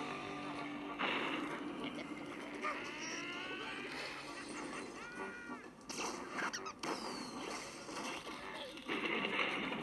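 Cartoon sound effects of crashing and whooshing play from a game.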